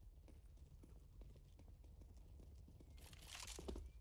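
A weapon clicks and rattles as it is switched.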